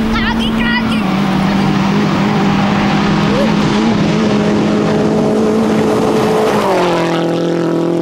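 Gravel sprays and crackles under a car's tyres.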